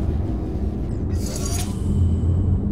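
A heavy metal cube thuds down onto a floor button with a clunk.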